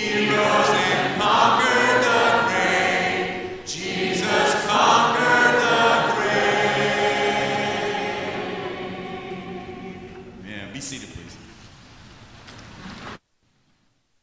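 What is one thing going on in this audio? A large congregation sings a hymn together in an echoing hall.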